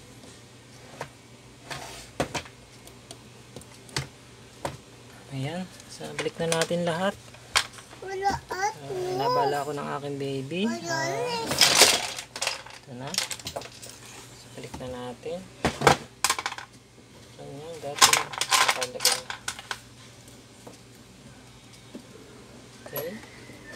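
Small plastic and metal parts click and knock as they are handled.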